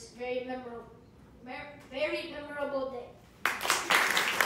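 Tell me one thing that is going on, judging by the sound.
A boy speaks into a microphone.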